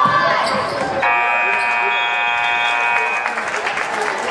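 A loud buzzer sounds steadily for a couple of seconds.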